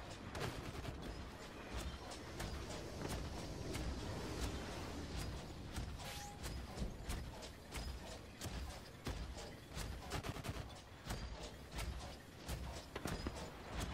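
Gunfire and blasts crack repeatedly in a battle.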